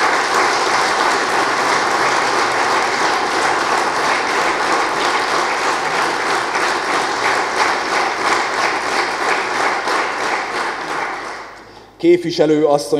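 A crowd applauds steadily in a large room, then the applause fades out.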